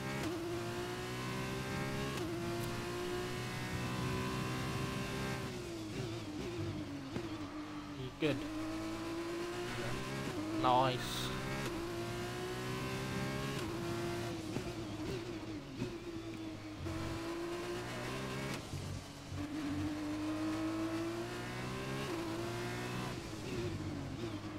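A racing car engine screams, rising and falling in pitch as it shifts gears and brakes.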